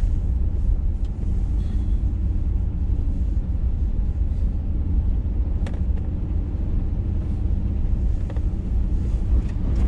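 A vehicle body knocks and creaks over bumps.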